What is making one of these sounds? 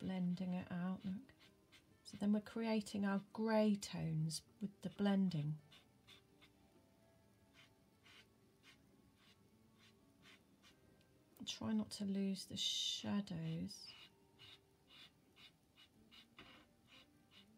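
A cotton bud rubs and brushes on paper.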